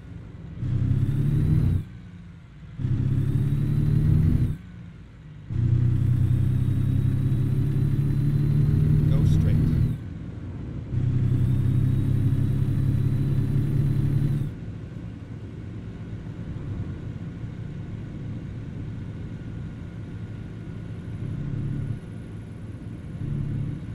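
A truck engine drones loudly, then drops to a quieter hum.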